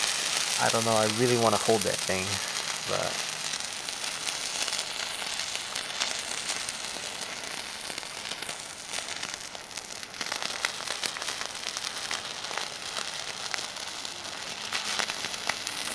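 A burning fuse fizzes and crackles close by.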